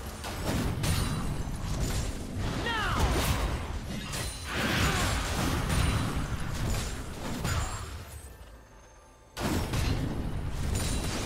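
Magic spells crackle and burst during a fight between game characters.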